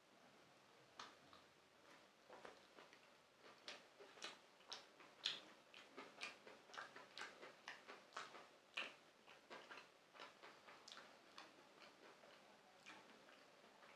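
A young man chews and smacks his lips close up.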